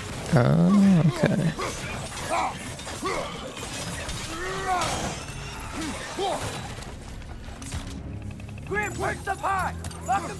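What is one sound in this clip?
Metal blades swish and strike hard in a fight.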